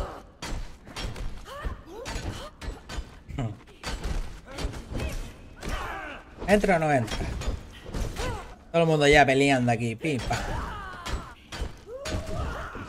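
Swords clash and strike in a fast fight.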